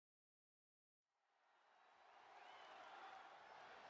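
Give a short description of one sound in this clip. A large crowd cheers in a big echoing arena.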